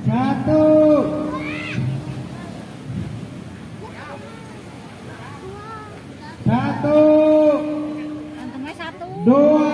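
A group of children chant loudly together in drawn-out calls.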